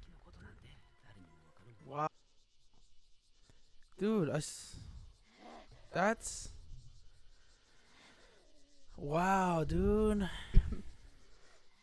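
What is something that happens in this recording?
A young man talks briefly and calmly into a close microphone.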